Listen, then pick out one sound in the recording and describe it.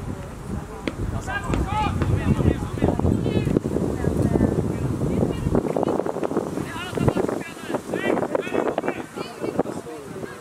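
Football players shout to each other across an open field.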